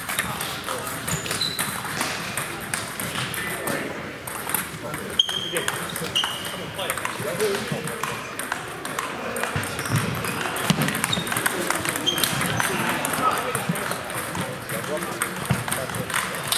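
Table tennis balls click against bats and tables in a large echoing hall.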